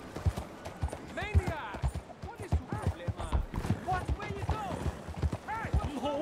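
A horse's hooves clop on a dirt street.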